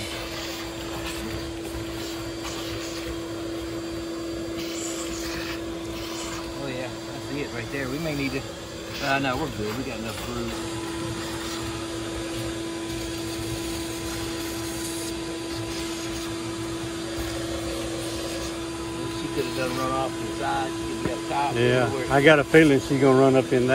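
Bees buzz up close.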